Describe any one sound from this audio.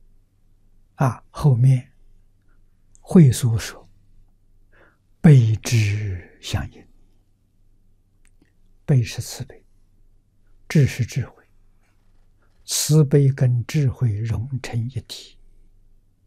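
An elderly man speaks slowly and calmly into a close microphone, in short phrases with pauses.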